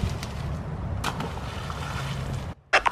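Something splashes into the water.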